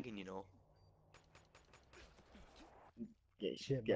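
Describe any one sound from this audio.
Rapid gunfire crackles in short bursts.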